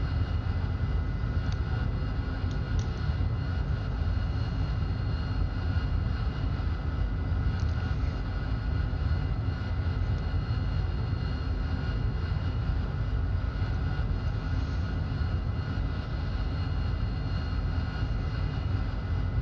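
A jet engine roars steadily up close.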